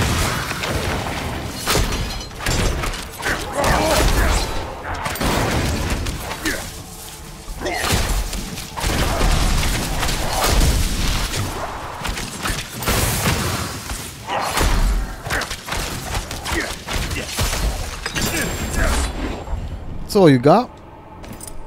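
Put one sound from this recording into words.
Magic blasts crackle and boom in a fierce fight.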